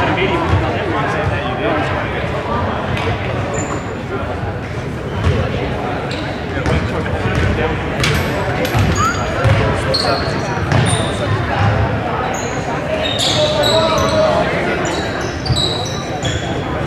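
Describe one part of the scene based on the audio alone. Players and spectators chatter and call out in an echoing hall.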